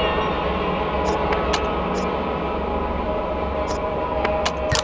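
Short electronic menu blips sound several times.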